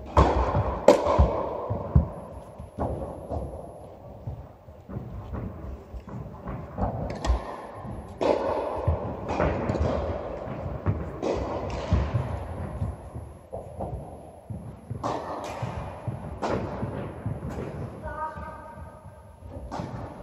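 Footsteps shuffle quickly on a hard court.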